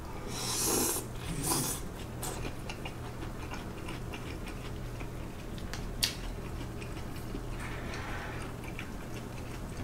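A young man chews and slurps food loudly, close by.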